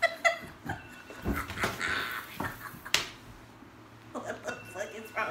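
A teenage girl laughs close by.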